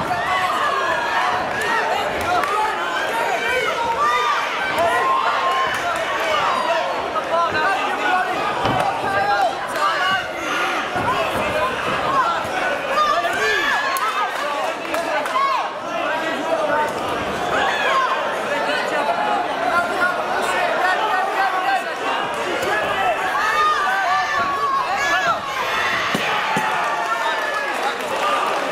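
A large indoor crowd chatters and shouts.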